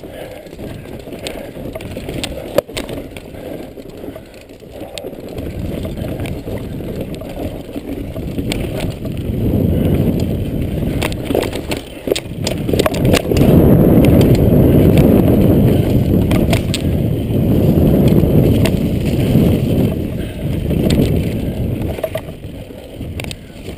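Bicycle tyres rumble over a bumpy dirt trail.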